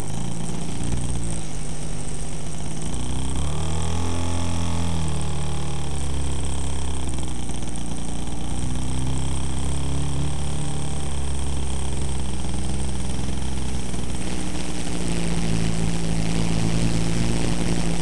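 An electric motor whines steadily, changing pitch as it speeds up and slows down.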